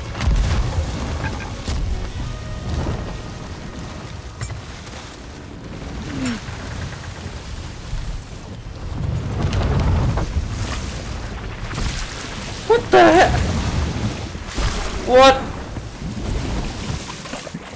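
Ocean waves surge and roar steadily.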